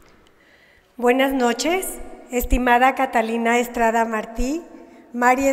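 A woman speaks calmly into a microphone, heard through loudspeakers in a large echoing hall.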